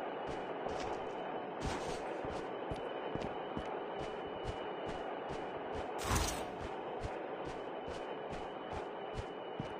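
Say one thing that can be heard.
Footsteps run quickly and steadily over ground.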